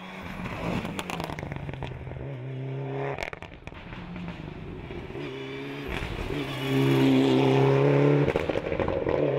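A rally car engine pops and crackles.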